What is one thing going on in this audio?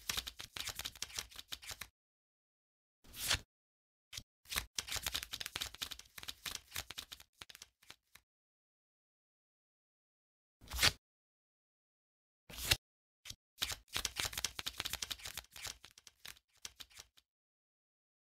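Rapid crackling clicks rattle in bursts as tiles flip over one after another.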